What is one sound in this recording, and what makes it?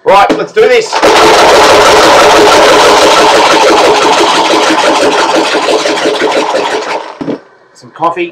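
A box is shaken hard close by, rattling loudly.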